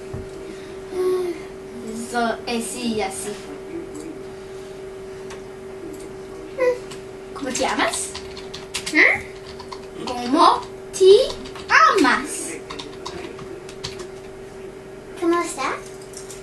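A young girl talks and laughs with animation close by.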